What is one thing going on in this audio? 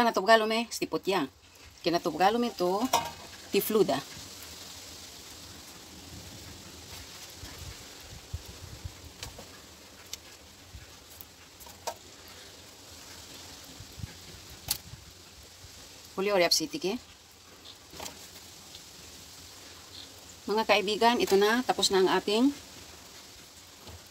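Grilled food is moved about on a metal grill rack with light clicks.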